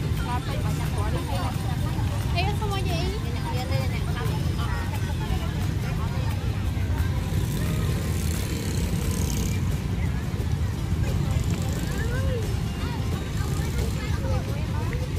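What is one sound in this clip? Women chat casually close by.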